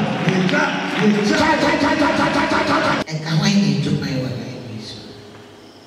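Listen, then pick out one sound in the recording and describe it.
A crowd of men and women pray loudly together in an echoing hall.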